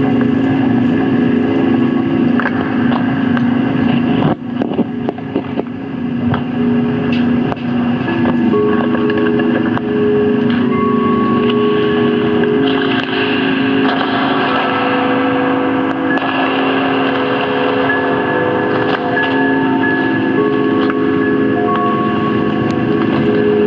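Electronic synthesizer tones drone and shift in steady layered pitches.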